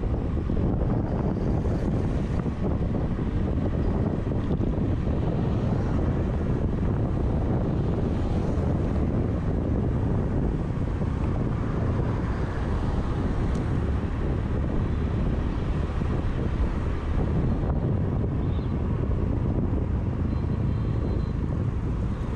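A scooter engine hums steadily close by.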